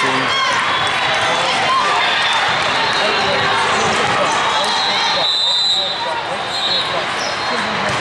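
Many voices chatter and call out in a large echoing hall.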